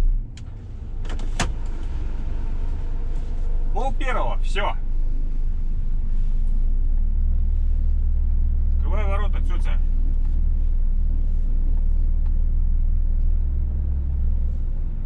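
A truck's diesel engine rumbles steadily as the truck drives.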